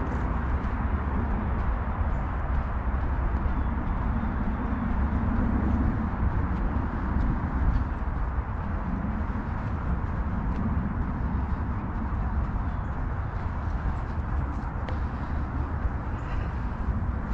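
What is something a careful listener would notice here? Footsteps swish through short grass.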